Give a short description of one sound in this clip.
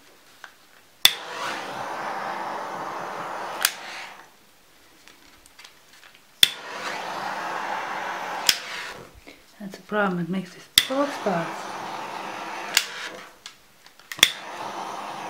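A heat gun's switch clicks.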